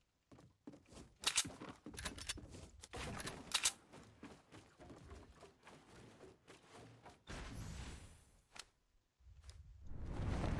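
Wooden building pieces clack into place in a video game.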